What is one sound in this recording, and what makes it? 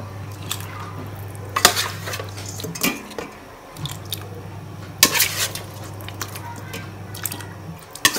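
A ladle knocks against a steel pot.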